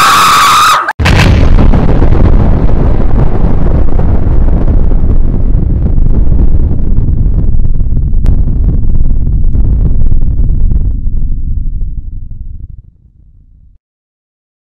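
A huge explosion booms and rumbles, slowly fading.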